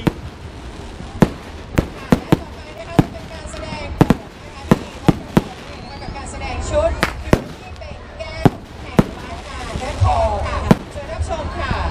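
Fireworks crackle and whistle as they rise.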